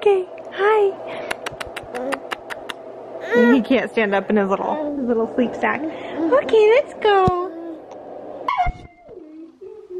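A woman talks to a baby in a high, playful voice close by.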